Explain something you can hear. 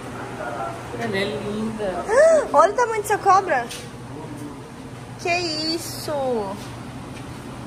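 A young woman talks excitedly close by.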